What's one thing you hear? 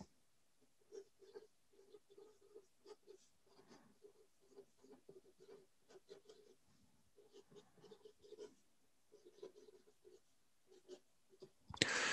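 A marker squeaks and scratches faintly across a board.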